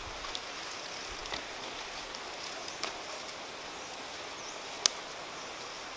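Leaves rustle as a woman gathers greens.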